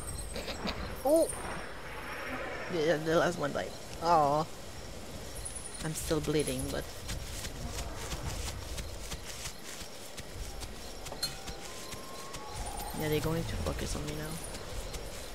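Small creatures chirp and screech in short, rising and falling calls.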